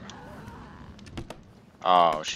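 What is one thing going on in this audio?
A hand taps on a wooden crate.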